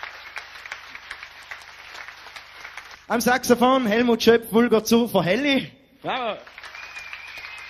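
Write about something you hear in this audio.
A crowd claps and cheers in a room.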